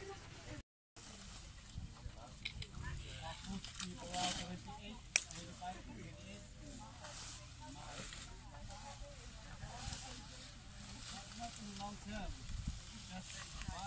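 Elephants rustle and tear leafy stalks as they feed.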